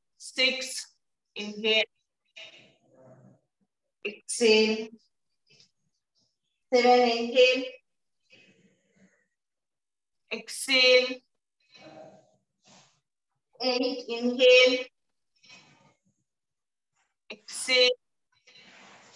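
A young woman speaks calmly and clearly nearby, giving short instructions with pauses.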